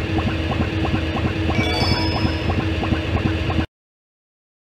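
Upbeat video game music plays.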